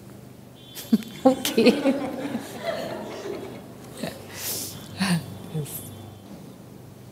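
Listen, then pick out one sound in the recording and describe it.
An audience laughs in a large room.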